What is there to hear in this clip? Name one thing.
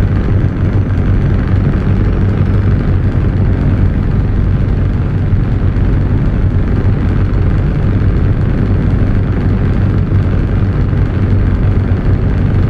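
Tyres roll on a road with steady noise.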